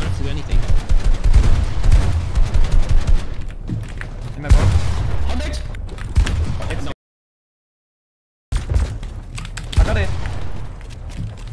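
Rapid game gunshots and building clatter crack in bursts.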